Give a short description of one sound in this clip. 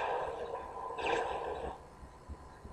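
A video game explosion bursts through a television speaker.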